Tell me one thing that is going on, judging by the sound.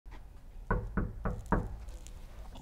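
A fist knocks four times on a wooden door.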